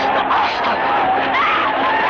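A woman screams in distress.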